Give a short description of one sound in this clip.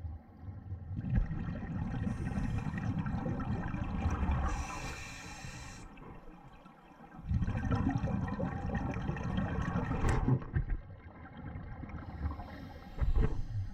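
Air bubbles from a diver's breathing gear gurgle and rumble underwater in bursts.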